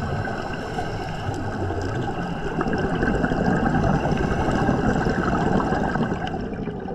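Muffled underwater rushing goes on steadily.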